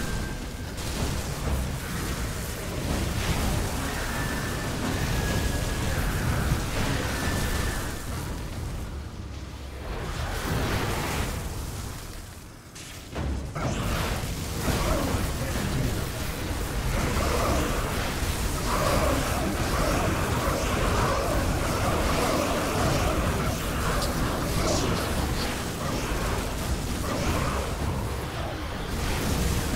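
Magic spells crackle and explode in a fast, busy game battle.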